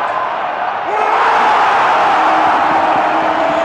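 A crowd roars loudly.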